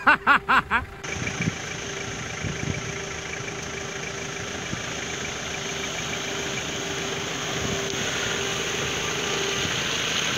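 An off-road vehicle engine rumbles steadily.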